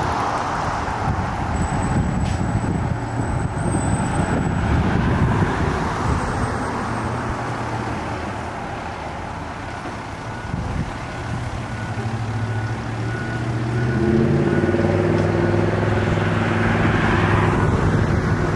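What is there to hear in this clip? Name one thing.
A fire engine's diesel engine rumbles as it drives slowly past.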